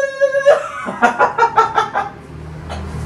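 A young man laughs loudly up close.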